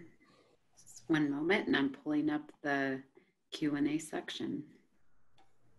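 A second woman speaks calmly over an online call.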